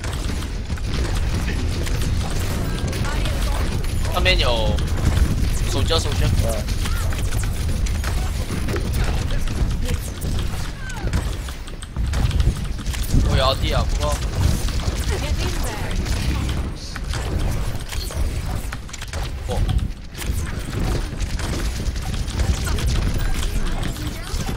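Rapid energy weapon shots crackle and zap.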